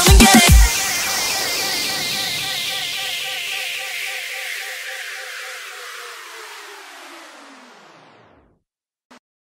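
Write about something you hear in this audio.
Electronic dance music plays with heavy bass hits, then a falling synth sweep fades away.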